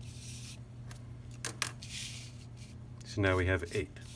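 Cardboard pieces scrape and slide across a table.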